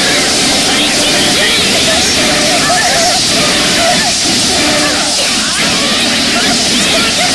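Magic spells whoosh and crackle in a busy battle.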